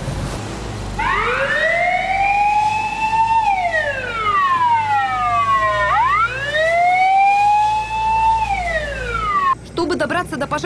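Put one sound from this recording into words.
A fire truck's siren wails, rising and falling.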